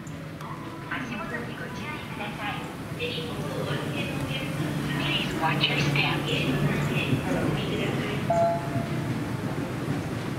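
An escalator hums and rumbles steadily close by.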